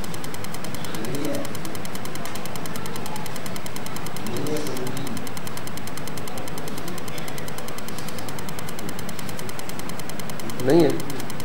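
A man speaks in short, spaced bursts through a microphone and loudspeaker.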